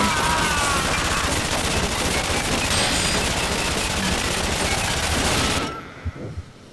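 A submachine gun fires rapid bursts up close.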